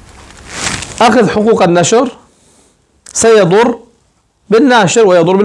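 An older man speaks calmly and close by, in short phrases.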